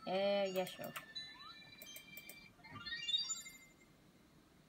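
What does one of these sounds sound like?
Video game sound effects chime and jingle from a loudspeaker.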